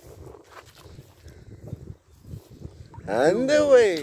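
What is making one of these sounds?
A landing net swishes and splashes in water.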